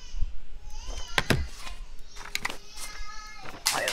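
Paper rustles as a document slides across a desk.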